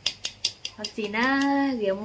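A hand taps on a ceramic piggy bank.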